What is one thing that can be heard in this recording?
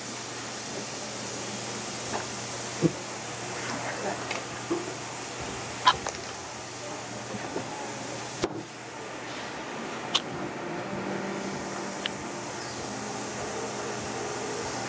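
Dental instruments click and scrape against teeth.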